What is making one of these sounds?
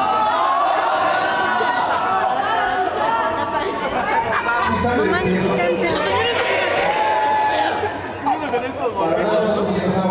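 A live band plays loudly with electric guitars in a large echoing hall.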